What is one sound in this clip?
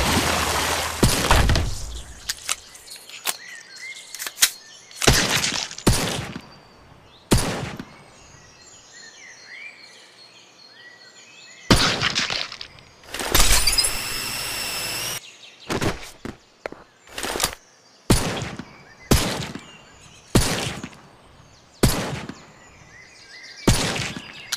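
Loud rifle shots ring out one at a time, each with a short echo.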